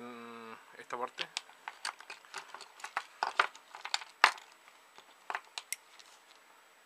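Small plastic parts click and rattle as they are handled.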